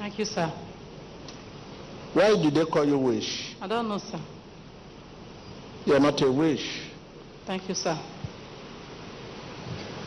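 A middle-aged woman answers through a microphone.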